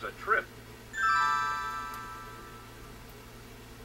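A bright electronic chime rings out and slowly fades.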